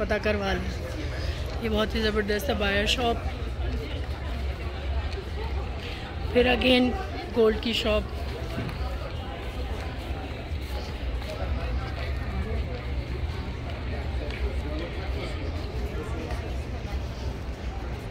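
A crowd murmurs in a busy indoor space.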